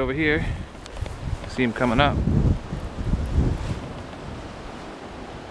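A river flows gently with soft lapping water.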